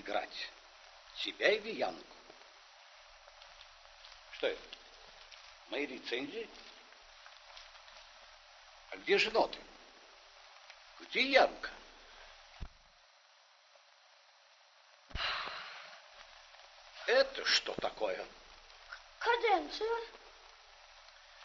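An elderly man speaks calmly in a low voice.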